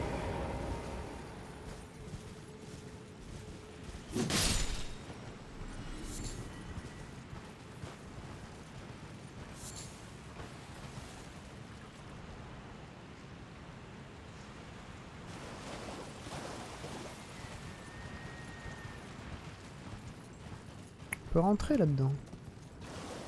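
Horse hooves thud softly on grass and stone.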